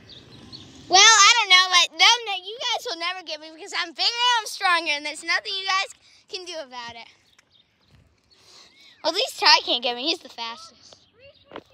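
A young child talks loudly and excitedly nearby.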